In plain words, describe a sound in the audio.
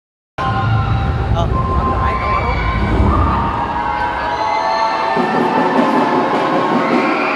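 A large crowd chatters in a big echoing hall.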